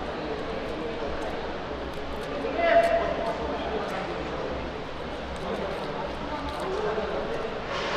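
A knife peels and scrapes at a small onion.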